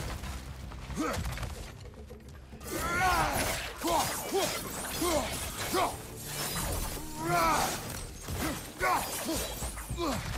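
Small creatures shriek repeatedly.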